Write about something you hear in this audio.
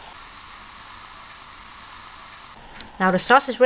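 Oil sizzles and bubbles steadily in a pan.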